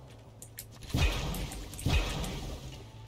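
A shotgun fires twice with heavy booms.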